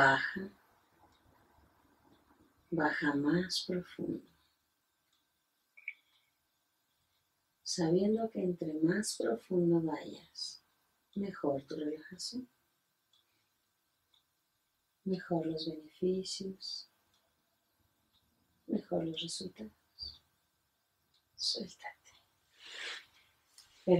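A middle-aged woman speaks softly and calmly close by, with pauses.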